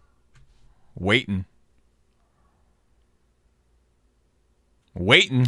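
A young man speaks in short bursts into a close microphone.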